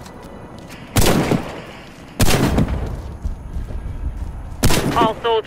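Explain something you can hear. A rifle fires loud shots in short bursts.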